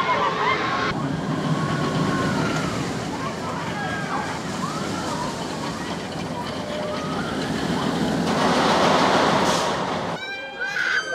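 A roller coaster train rumbles and roars along its track.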